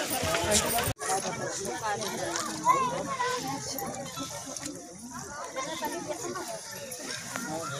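Water splashes as people wade through it.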